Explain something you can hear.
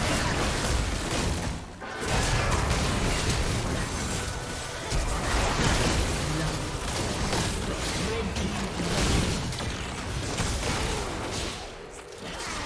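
Magic blasts crackle and boom in a fast fight.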